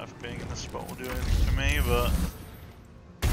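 Lightning crackles and roars in a loud magical blast.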